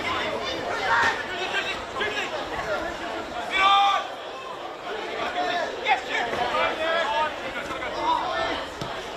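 Men shout to each other across an open field at a distance.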